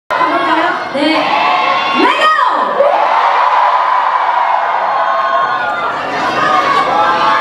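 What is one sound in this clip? A young woman speaks into a microphone over loudspeakers in a large hall.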